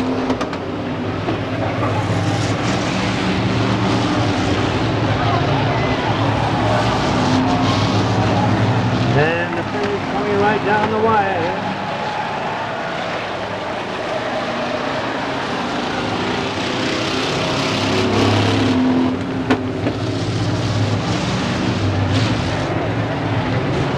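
Race car engines roar loudly as cars speed past.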